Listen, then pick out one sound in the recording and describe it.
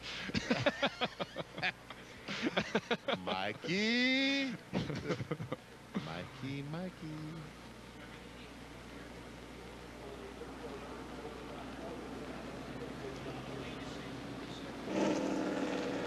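Race car engines roar past, their pitch rising and falling.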